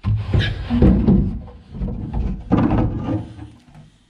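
A hatch lid knocks and rattles as it is lifted open.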